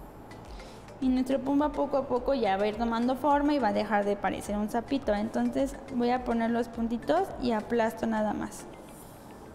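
A woman speaks calmly and with animation, close to a microphone.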